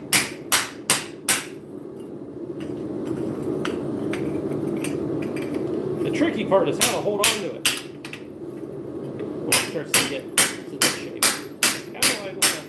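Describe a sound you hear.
A hammer strikes sheet metal on an anvil in sharp, ringing blows.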